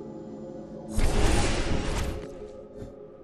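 A game ability whooshes loudly.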